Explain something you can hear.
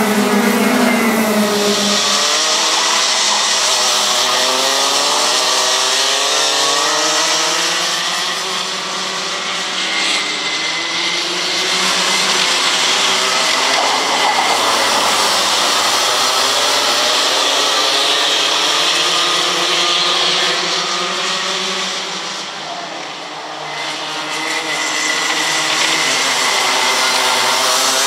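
Several kart engines whine loudly, their pitch rising and falling as they race past.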